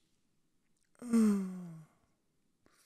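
A man groans.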